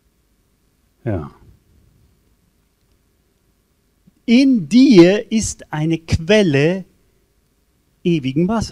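An elderly man speaks with animation through a microphone and loudspeakers, pausing between phrases.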